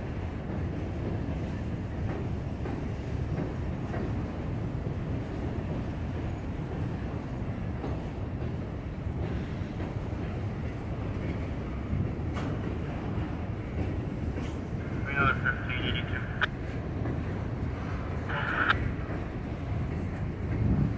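A freight train rumbles steadily across a steel bridge overhead.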